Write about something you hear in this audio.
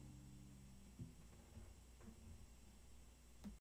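A few notes are plucked softly on an acoustic guitar.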